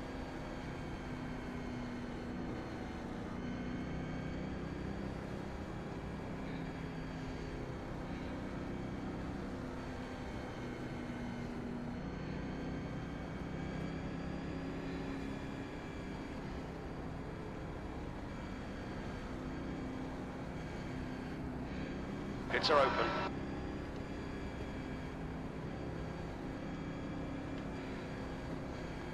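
A race car engine drones steadily at high revs.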